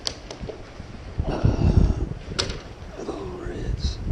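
A fish flops and slaps on wooden boards.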